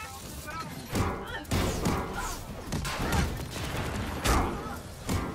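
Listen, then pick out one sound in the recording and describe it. Heavy blows thud and clang in a fight.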